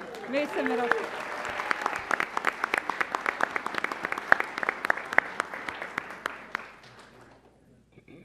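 A crowd applauds.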